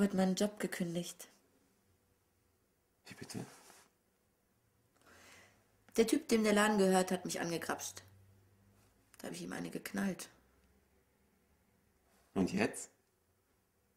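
A young woman speaks quietly and close by, in short phrases.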